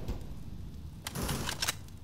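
A smoke grenade hisses as its cloud spreads.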